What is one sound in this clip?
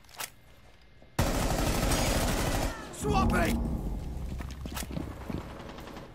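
A rifle fires a few loud shots.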